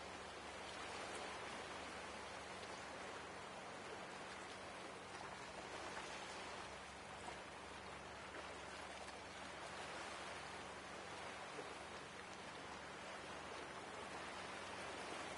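Rough water churns and sloshes steadily.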